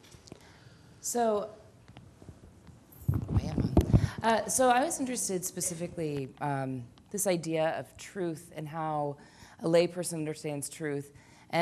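A woman speaks calmly into a microphone in an echoing hall.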